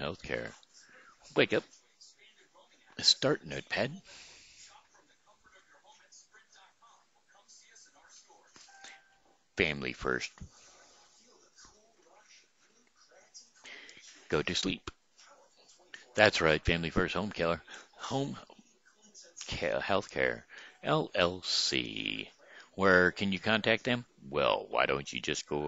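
An older man speaks calmly into a headset microphone, close by, with pauses.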